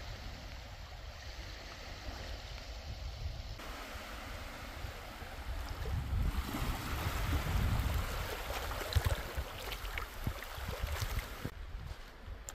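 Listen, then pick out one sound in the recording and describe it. Small waves lap gently on a shore.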